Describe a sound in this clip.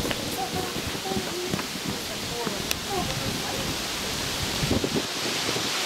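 Children chatter and shout while playing outdoors.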